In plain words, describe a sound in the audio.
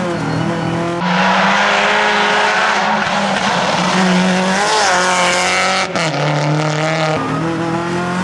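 Tyres spray gravel and slush as a car slides past.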